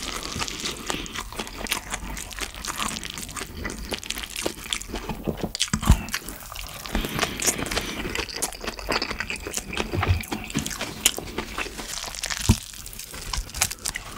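A spoon scrapes and clinks against a bowl.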